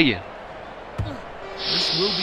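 A rugby ball is kicked with a dull thump.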